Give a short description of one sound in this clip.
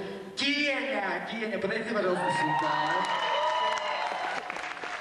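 A young man speaks loudly into a microphone, heard over loudspeakers in a large hall.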